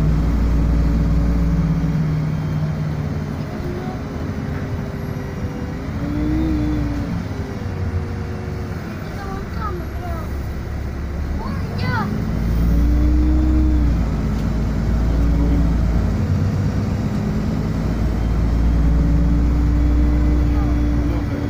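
A bus engine hums and whines steadily from inside, rising and falling in pitch.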